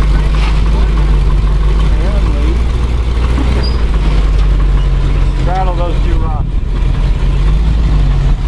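An engine idles with a low steady rumble.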